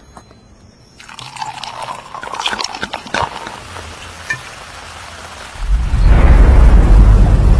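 Champagne fizzes and crackles in glasses.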